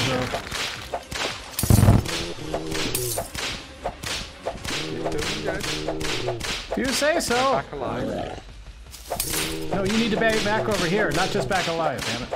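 Video game weapons zap and pop rapidly.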